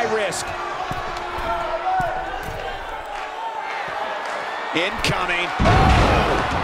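A crowd cheers and shouts loudly in a large arena.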